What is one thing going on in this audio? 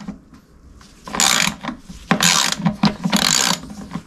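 A screwdriver scrapes and taps against metal.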